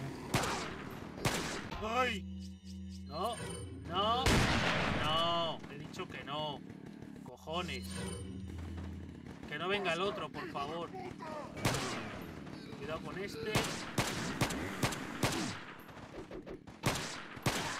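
Gunshots fire sharply again and again.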